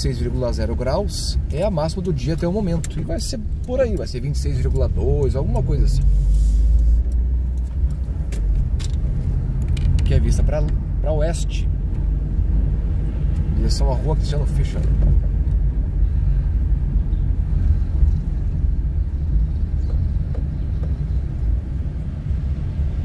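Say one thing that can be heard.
A car engine hums low and steady while driving.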